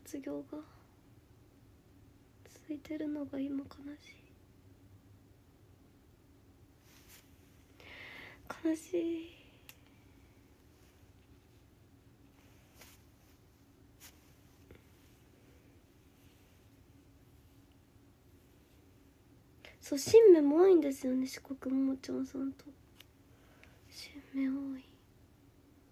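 A young woman talks softly into a phone microphone in short bursts.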